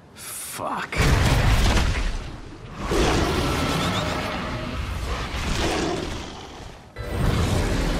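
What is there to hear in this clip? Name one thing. A monster growls loudly.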